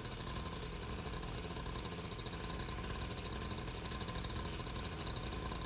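A chainsaw engine buzzes and rattles steadily up close.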